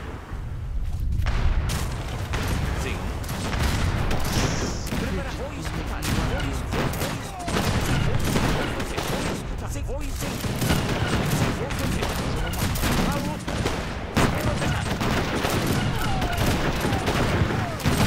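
Cannons fire from ships in dull booms.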